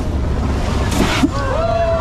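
Water splashes up in a big, sudden spray.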